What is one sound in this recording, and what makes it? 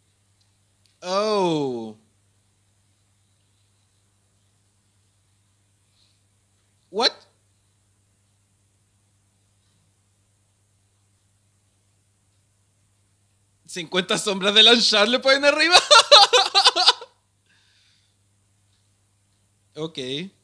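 A young man speaks briefly into a microphone close up.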